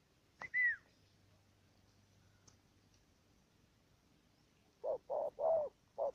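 A bird flaps its wings.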